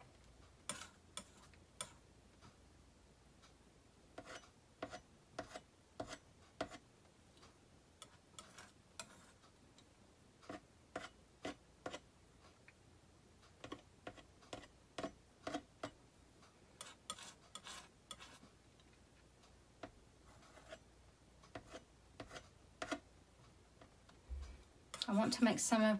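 A palette knife taps and scrapes against a painting board.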